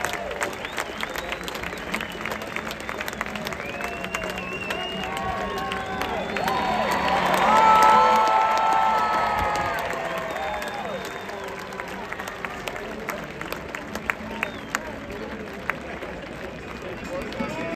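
A large crowd cheers and shouts outdoors, swelling to a loud roar and then settling.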